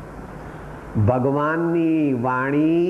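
An elderly man chants in a long, drawn-out voice.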